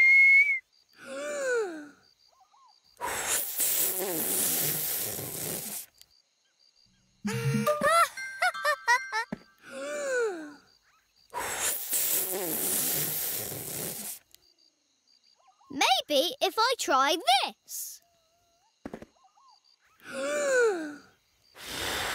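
A young man's voice speaks playfully and with animation in a cartoonish tone.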